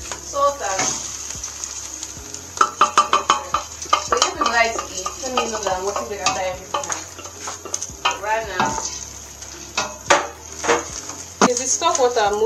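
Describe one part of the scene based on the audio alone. Liquid pours and splashes into a pot.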